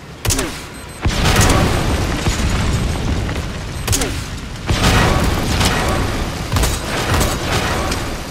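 Heavy gunshots boom and echo outdoors.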